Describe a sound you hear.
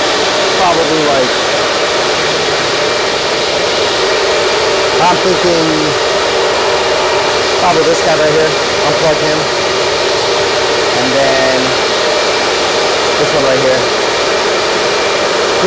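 Many cooling fans roar loudly and steadily.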